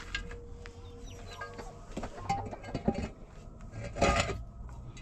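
Plastic containers knock and rattle as they are handled.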